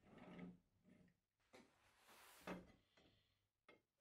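A power tool is set down onto a board with a thud.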